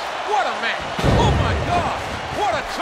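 Heavy thuds of bodies slam onto a wrestling mat.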